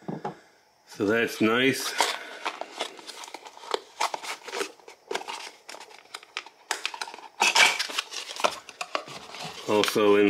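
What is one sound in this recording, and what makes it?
A cardboard box lid scrapes and rustles as hands handle it.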